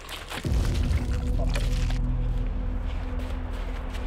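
Footsteps rustle through dry leaves on the ground.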